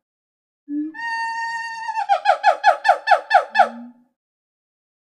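A monkey screeches loudly in a series of shrill cries.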